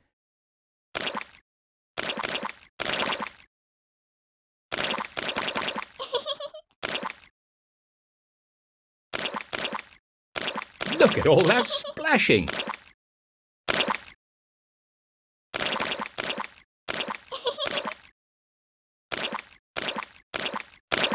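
Cartoon mud splashes in short, repeated bursts.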